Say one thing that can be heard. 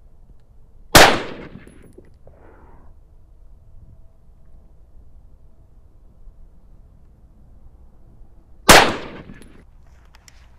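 A rifle fires single loud shots that echo outdoors.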